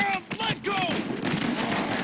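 Gunfire bursts out in a fight with a large creature.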